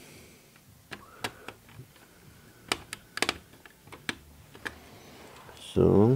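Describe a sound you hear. Small clicks and taps of hands working on wiring.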